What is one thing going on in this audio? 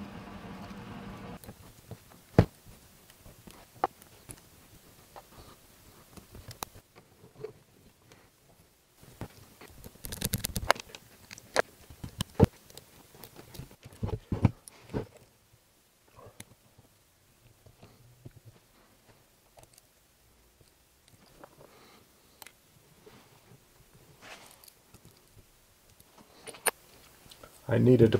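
Small metal parts click and tap against each other as hands fit them together.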